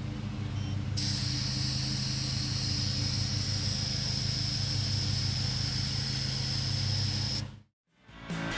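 Air hisses steadily from a tank valve.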